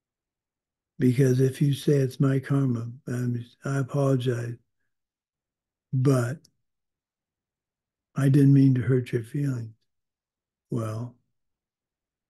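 An older man speaks calmly in short bursts over an online call.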